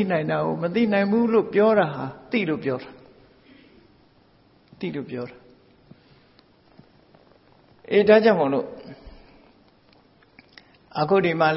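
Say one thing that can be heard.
An elderly man speaks calmly in short bursts with pauses.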